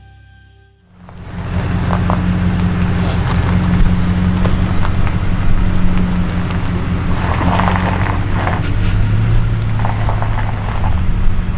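A pickup truck engine idles with a steady low rumble.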